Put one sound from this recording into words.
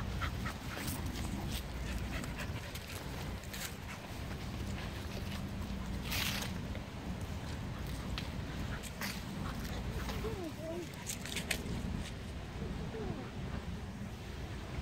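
Paws thud and rustle on grass as dogs run.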